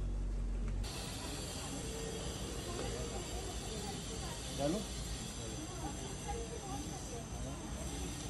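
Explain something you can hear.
A metal spatula scrapes across a metal tray.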